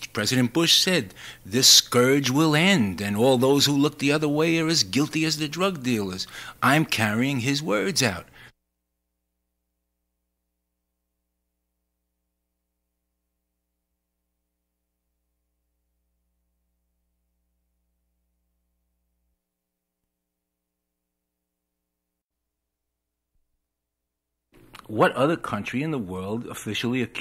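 A man speaks steadily.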